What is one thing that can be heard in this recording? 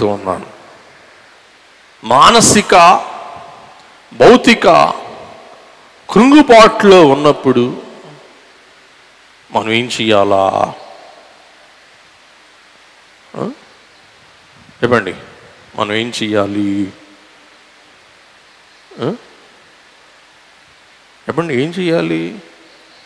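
A middle-aged man speaks with animation through a headset microphone and loudspeakers, in short bursts with long pauses.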